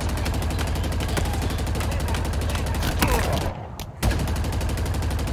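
An automatic rifle fires in rapid, steady bursts.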